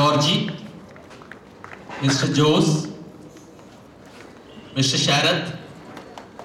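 A man speaks loudly into a microphone in short bursts.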